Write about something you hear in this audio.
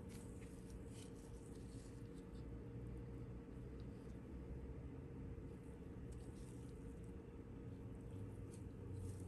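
Nitrile-gloved hands rustle and tick faintly while handling a metal eyeglass frame.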